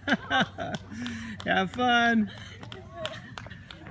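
A runner's footsteps slap on the pavement as she passes close by.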